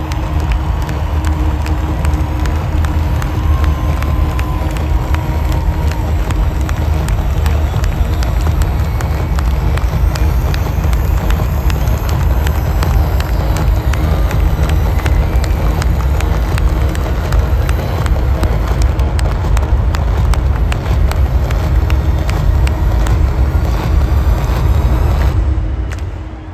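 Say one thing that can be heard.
A band plays loud music with heavy bass through big loudspeakers outdoors.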